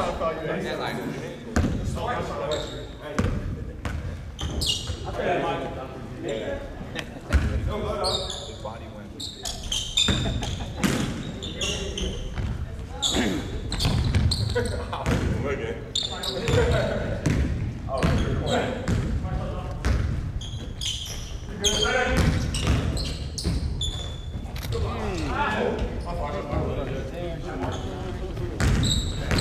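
Basketballs bounce on a wooden floor in a large echoing gym.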